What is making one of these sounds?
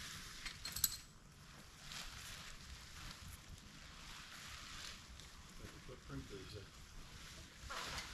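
Nylon fabric rustles and flaps as a tent is shaken out.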